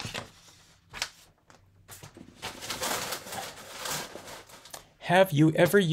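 Paper rustles as a sheet is lifted and moved.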